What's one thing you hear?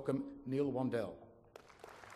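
A man speaks calmly into a microphone, heard through a loudspeaker in a large echoing hall.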